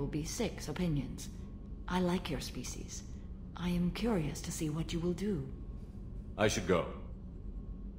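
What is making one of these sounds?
A woman speaks calmly and softly.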